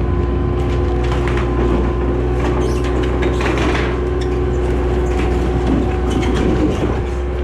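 Wood timbers crack and splinter as a shed collapses.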